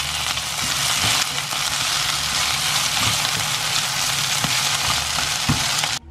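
Food sizzles loudly in a hot frying pan.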